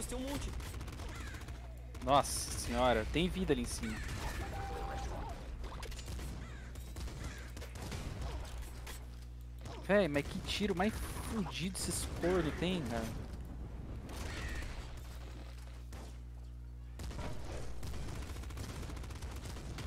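Rapid bursts of video game gunfire crackle and pop.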